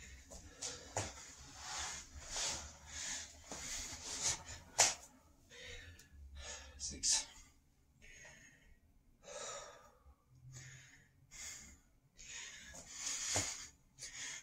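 Hands and feet thump on a wooden floor.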